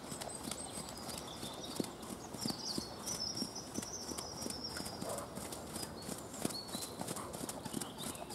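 Horse hooves thud rhythmically on soft ground as a horse trots.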